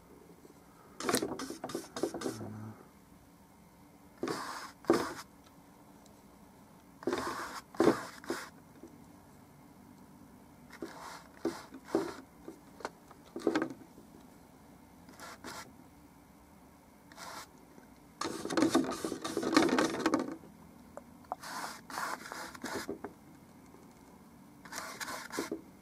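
A paintbrush scrubs and dabs against canvas in short bursts.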